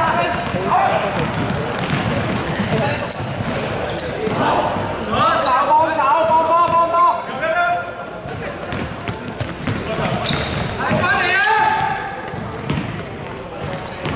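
A basketball bounces on the court with dull thuds.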